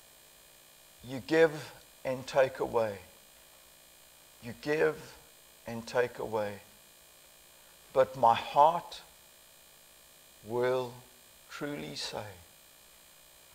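An elderly man speaks calmly and deliberately in short phrases through a microphone.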